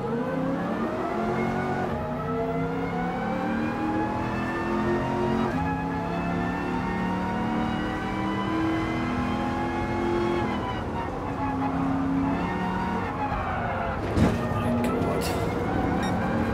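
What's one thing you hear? A race car engine roars and revs up through the gears, dropping in pitch at each shift.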